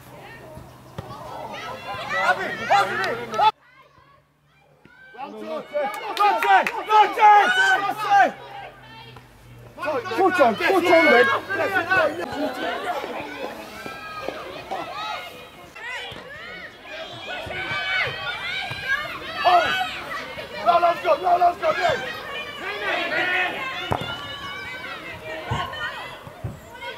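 Young women shout and call to each other outdoors.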